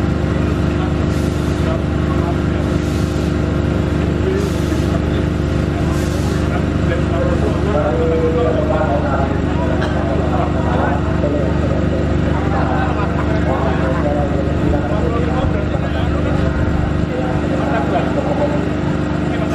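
A diesel locomotive engine rumbles steadily as a train slowly approaches.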